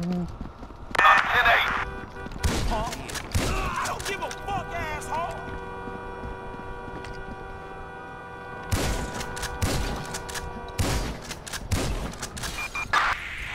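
Loud shotgun blasts go off close by, one at a time.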